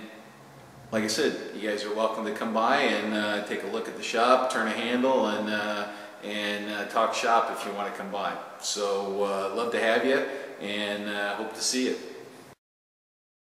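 An elderly man talks calmly and closely into a microphone.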